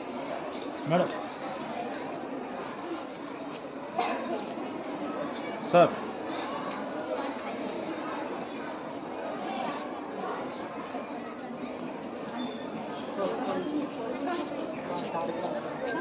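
Children and adults murmur and chatter nearby.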